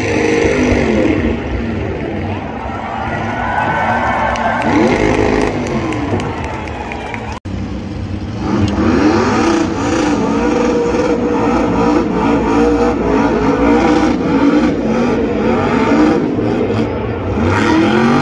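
An engine revs hard, rising and falling, as a truck spins.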